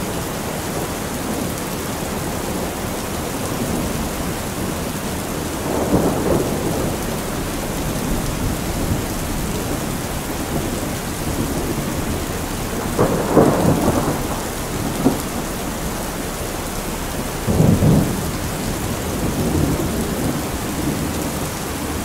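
Water streams off a roof edge and splashes below.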